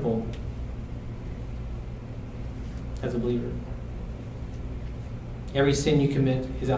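A man speaks calmly into a microphone, heard through a loudspeaker in a room.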